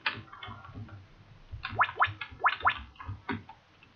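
Short electronic chimes sound as items are picked up.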